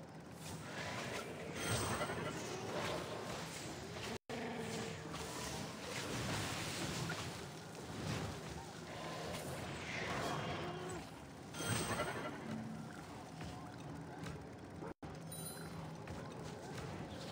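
Magic spells whoosh and sparkle in a game.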